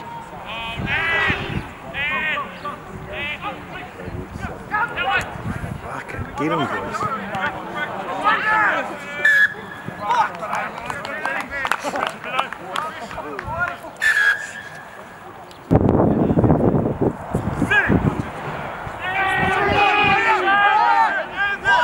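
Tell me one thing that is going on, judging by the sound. Men shout and call out across an open playing field.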